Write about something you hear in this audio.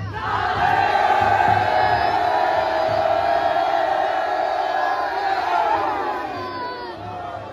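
A large crowd of men chants loudly together outdoors.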